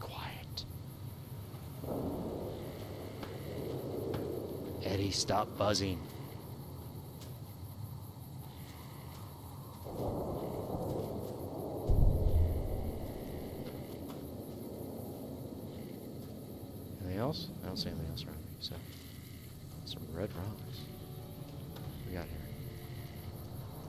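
Footsteps crunch over gravel and dry ground.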